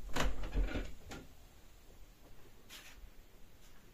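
A ceramic bowl clinks as it is set down.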